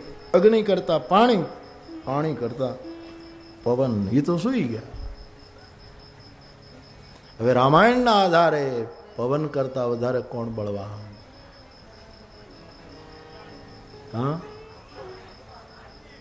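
An elderly man speaks with feeling into a microphone, heard through loudspeakers.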